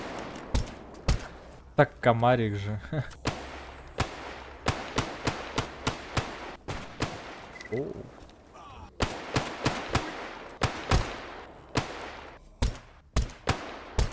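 Pistol shots crack again and again in quick bursts.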